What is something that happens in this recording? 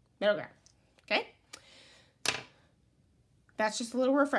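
A crayon clicks as it is set down on a hard surface.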